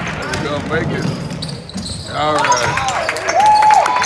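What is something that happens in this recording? A crowd of spectators cheers and shouts.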